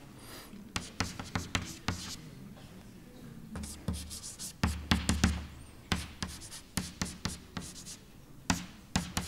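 Chalk taps and scratches sharply on a board.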